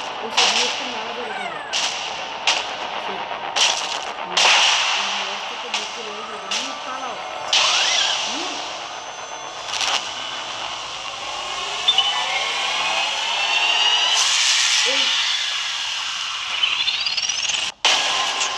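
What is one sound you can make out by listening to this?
Electricity crackles and zaps in sharp bursts.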